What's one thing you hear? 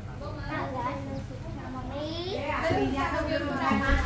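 A girl speaks with animation close by.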